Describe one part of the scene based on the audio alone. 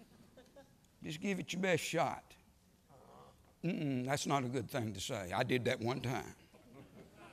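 A man speaks into a microphone in a large room, addressing an audience.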